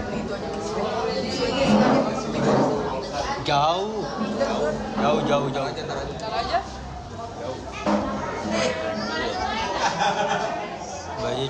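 A young man talks casually close to the microphone.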